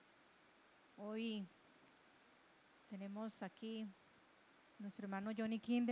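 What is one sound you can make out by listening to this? A woman speaks slowly and calmly into a microphone, with pauses.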